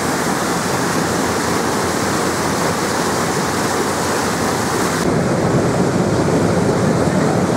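Wind blows hard across the open sea.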